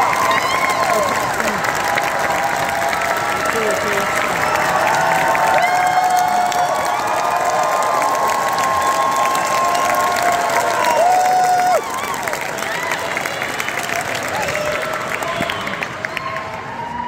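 People in a crowd cheer and whistle loudly.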